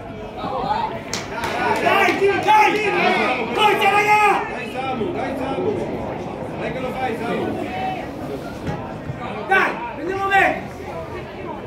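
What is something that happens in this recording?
Young male players shout to each other across an open outdoor pitch.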